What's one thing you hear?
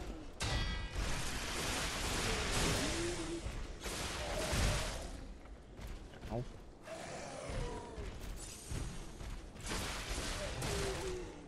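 A huge creature grunts and growls.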